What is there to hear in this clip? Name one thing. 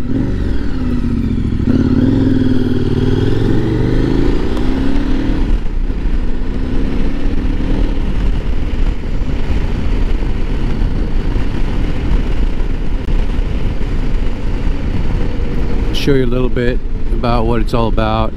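Wind rushes and rumbles past the rider.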